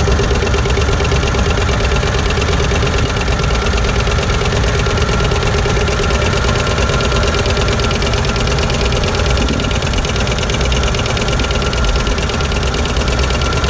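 A small steam engine chugs rapidly and steadily close by.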